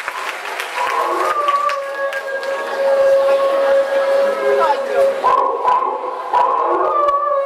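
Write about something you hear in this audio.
Music plays loudly through loudspeakers.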